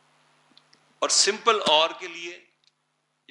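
An elderly man speaks briefly through a microphone.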